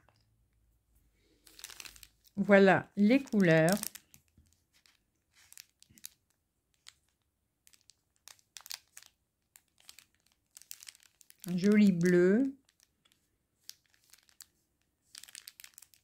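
A plastic bag crinkles softly as fingers handle it.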